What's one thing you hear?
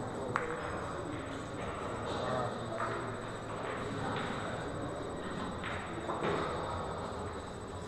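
Pool balls clack together as they are gathered and racked.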